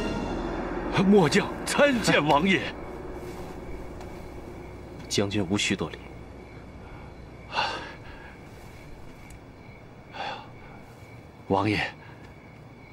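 A middle-aged man speaks with emotion, his voice shaking.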